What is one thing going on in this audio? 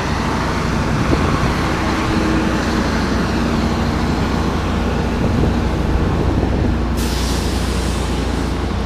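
A truck engine rumbles steadily nearby.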